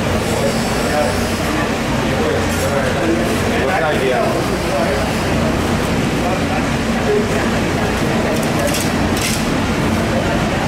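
A large knife slices through thick fish flesh.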